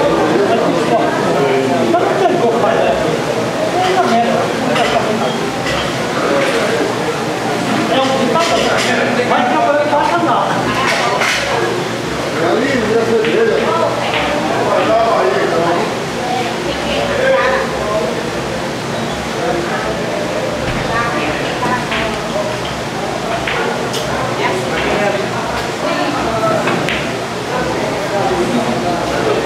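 Several men talk with animation nearby.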